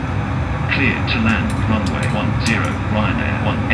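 Switches click on an overhead panel.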